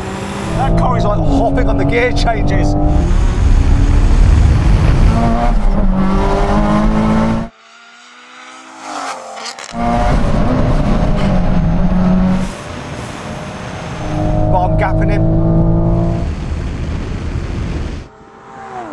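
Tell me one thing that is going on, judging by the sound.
A car engine roars loudly, revving up and down through the gears.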